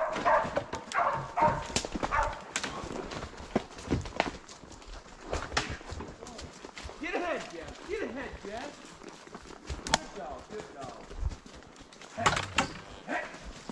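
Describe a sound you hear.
A horse's hooves thud on the forest floor.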